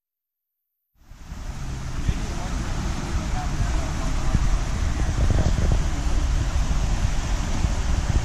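Wind blows through the trees outdoors.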